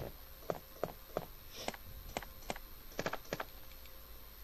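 Buttons on a game controller click quickly several times.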